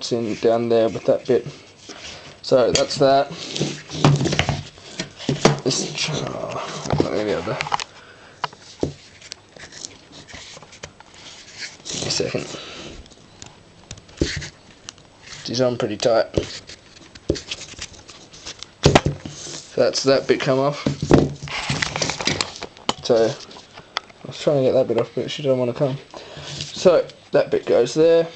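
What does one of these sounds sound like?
Wooden pieces knock and rub together as they are handled.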